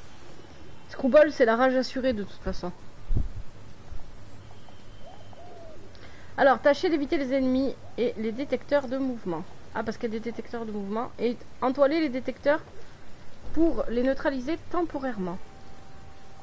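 A young woman talks with animation, close to a microphone.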